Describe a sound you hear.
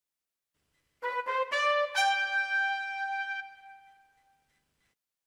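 An electronic keyboard plays a few short notes.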